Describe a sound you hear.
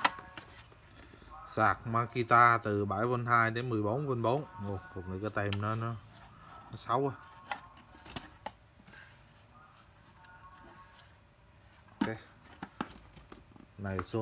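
A plastic case knocks and rattles as it is handled.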